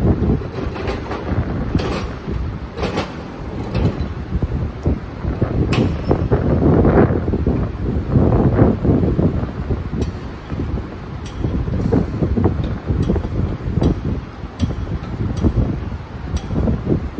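A turbocharger clanks against a steel bench vise as it is handled.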